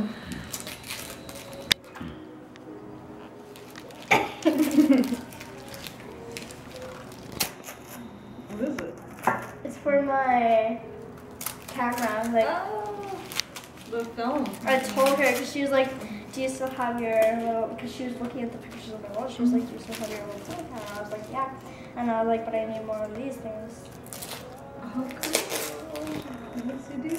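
Wrapping paper crinkles and tears as a present is unwrapped.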